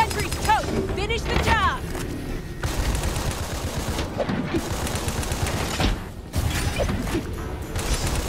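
A rapid-fire gun shoots in bursts.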